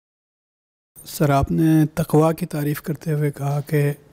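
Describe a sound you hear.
A young man speaks calmly into a handheld microphone.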